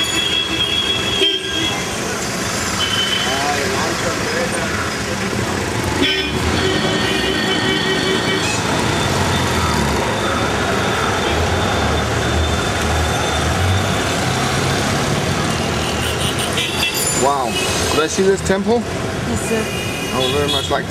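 Car and motorbike horns honk repeatedly.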